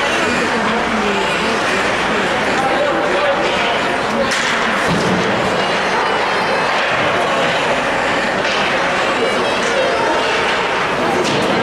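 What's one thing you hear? Ice skates scrape and carve across the ice in a large echoing rink.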